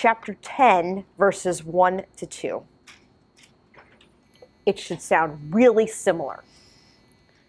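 A woman speaks into a microphone, pausing between phrases.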